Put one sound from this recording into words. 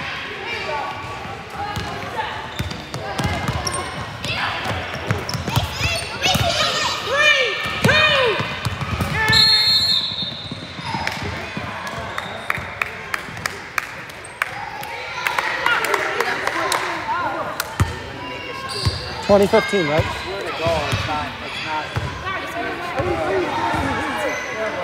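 Young women call out and shout to each other in a large echoing gym.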